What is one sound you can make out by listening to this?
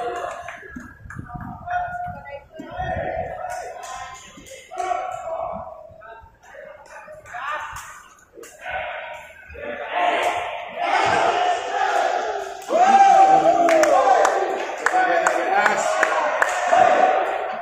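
A crowd of young people cheers and shouts in a large echoing hall.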